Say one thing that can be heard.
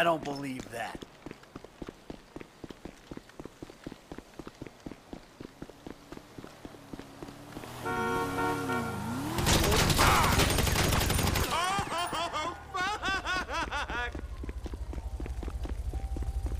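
Footsteps run on asphalt.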